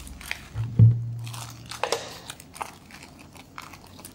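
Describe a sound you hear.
A plastic bag crinkles in hands.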